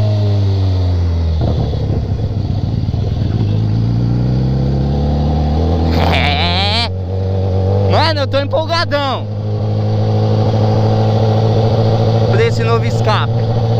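A motorcycle engine hums steadily and revs up and down close by.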